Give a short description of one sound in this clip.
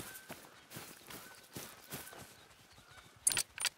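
Footsteps swish through dry grass.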